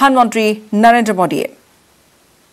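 A woman speaks clearly into a microphone, like a news presenter.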